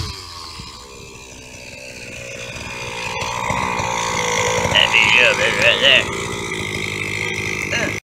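A small model car engine idles with a steady, rising buzz.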